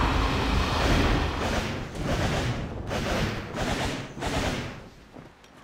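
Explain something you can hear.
Sharp blows crash in quick succession during a fight.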